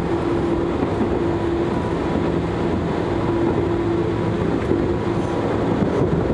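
A train rumbles and hums steadily along the tracks, heard from inside a carriage.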